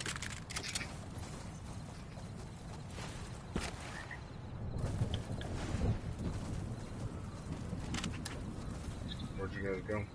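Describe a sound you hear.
Footsteps patter quickly over grass and shallow water.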